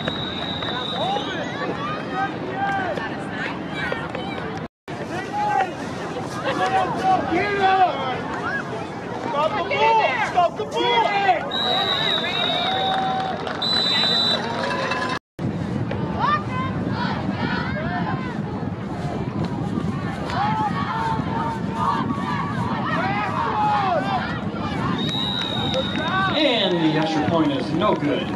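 A crowd of spectators cheers and talks outdoors.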